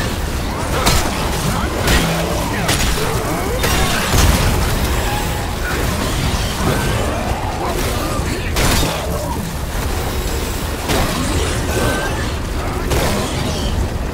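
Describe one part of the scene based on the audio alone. Heavy stomps crunch and squelch into flesh.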